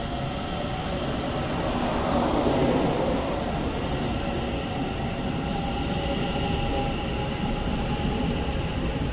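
A train rumbles steadily past in an echoing hall.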